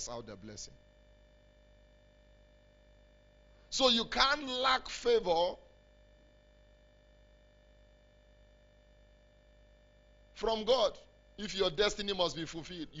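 A man speaks with animation into a microphone, in bursts separated by pauses.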